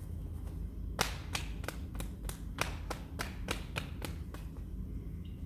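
Hands slap quickly and sharply on a man's arm.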